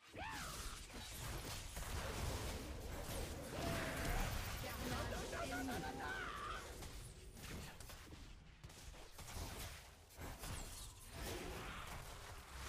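Game sound effects whoosh and clash.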